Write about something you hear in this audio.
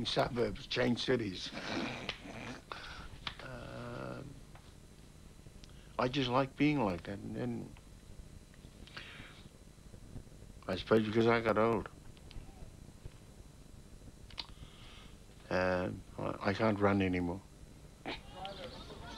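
An elderly man speaks calmly and thoughtfully, close by, with pauses.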